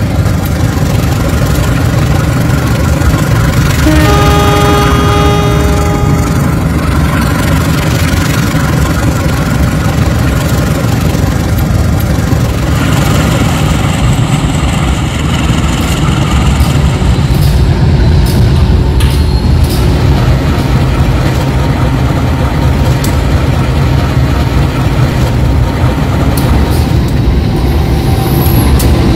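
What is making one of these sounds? Train wheels rumble along the rails.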